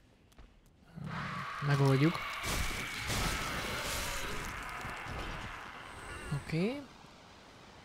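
Game combat sounds crash and roar loudly.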